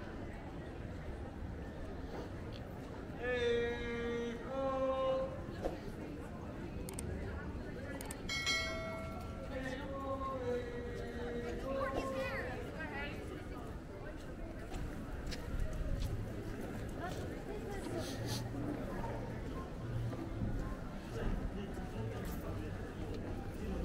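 A crowd of people chatters on a busy street outdoors.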